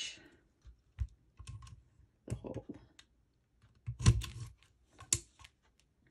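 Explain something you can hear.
A paper punch clacks shut.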